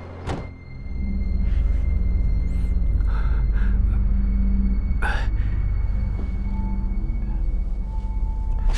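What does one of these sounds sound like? A man breathes heavily close by.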